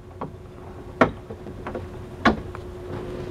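A metal latch clicks as it is turned.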